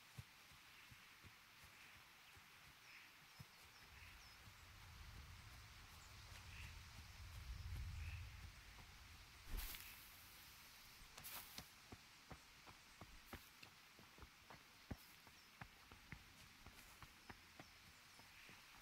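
Birds chirp outdoors.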